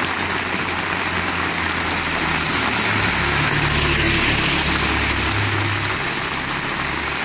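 A car engine rumbles low as a car drives past in the rain.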